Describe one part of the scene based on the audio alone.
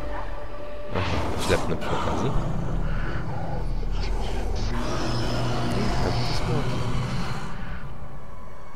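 A dragon roars loudly and long.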